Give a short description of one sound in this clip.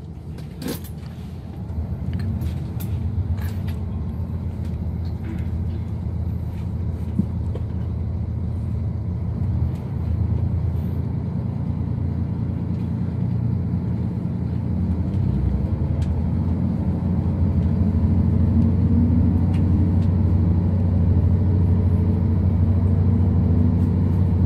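A train rumbles as it pulls out of a station, its low hum growing steadily louder.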